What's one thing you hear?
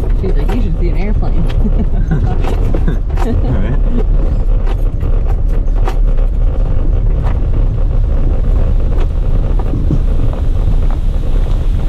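A car body rattles and knocks over a bumpy road.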